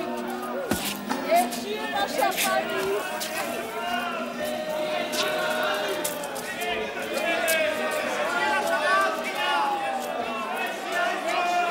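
A crowd of adults chatters and calls out loudly close by.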